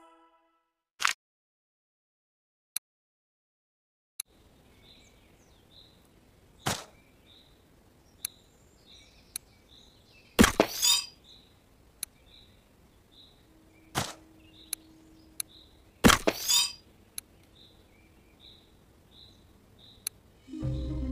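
Short clicks tap through menus.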